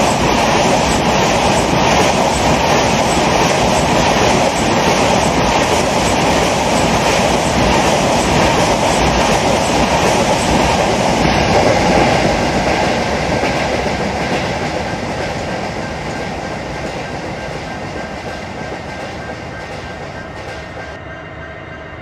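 A passenger train rolls past over the rails and slowly fades into the distance.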